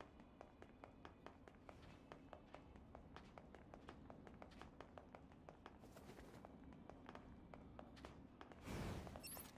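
Quick footsteps patter on a hard floor in a large echoing hall.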